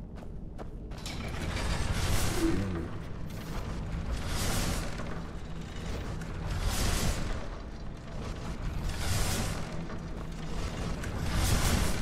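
Swinging blades whoosh through the air again and again.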